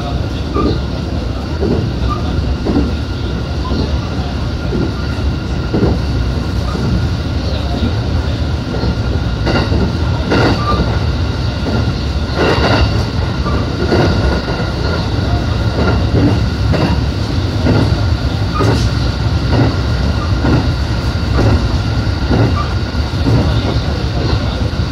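An electric train rumbles along the track, heard from inside the cab.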